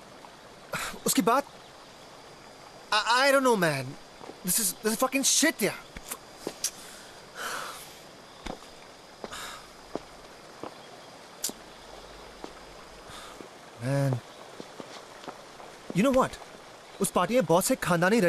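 A young man shouts in anguish, close by.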